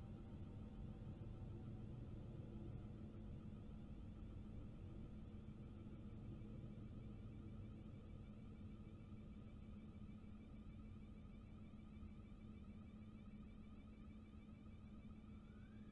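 An electric train motor hums steadily.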